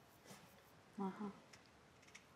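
A young woman answers softly close by.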